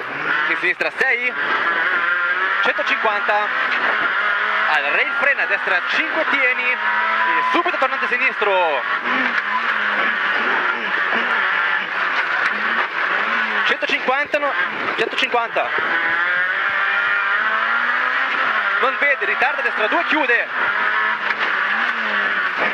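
A rally car engine revs hard, rising and falling in pitch as gears change.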